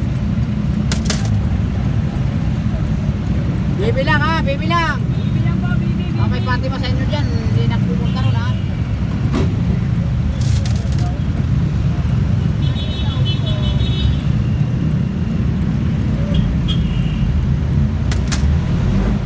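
Loose metal panels rattle and clatter as the bus moves.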